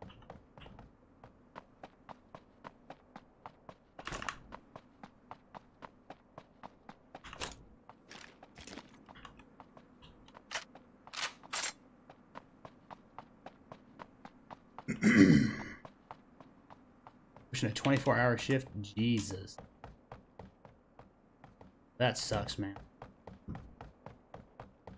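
Quick footsteps crunch and tap steadily as a figure runs.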